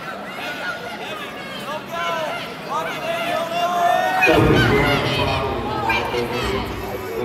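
Spectators shout encouragement across a large echoing hall.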